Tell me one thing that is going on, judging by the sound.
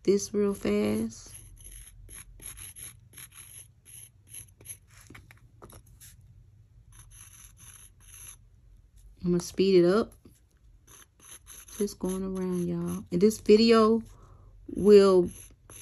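A metal point scrapes over wood in short, quick strokes.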